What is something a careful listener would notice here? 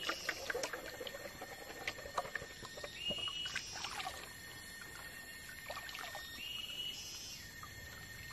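A shallow stream flows and burbles over rocks.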